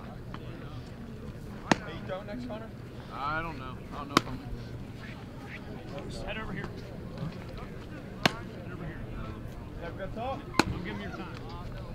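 Adults chat casually nearby outdoors.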